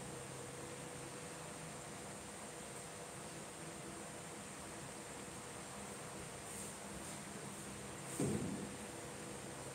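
A board eraser rubs softly across a whiteboard.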